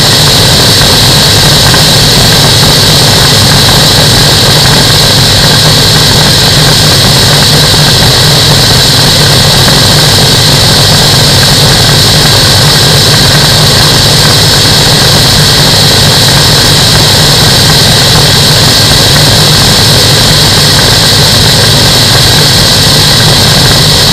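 Wind roars and buffets against a microphone.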